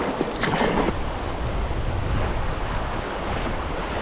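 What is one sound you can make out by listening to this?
River rapids rush and roar.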